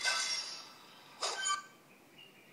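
A game gives a short bright chime.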